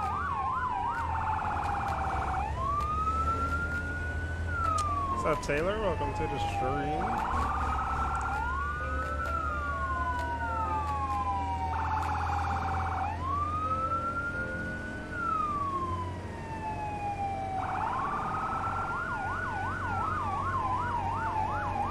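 A fire truck siren wails, rising and falling over and over, with short fast warbling bursts.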